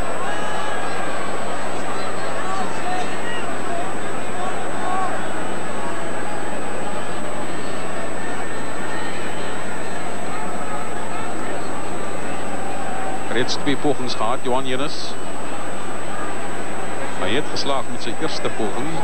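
A large stadium crowd murmurs and cheers steadily outdoors.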